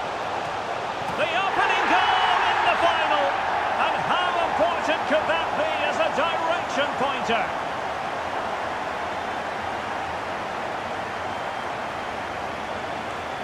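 A large crowd cheers loudly in a stadium.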